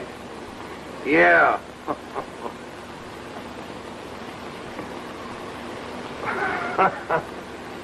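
Another man answers loudly.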